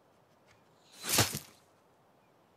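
An arrow strikes with a sharp thud.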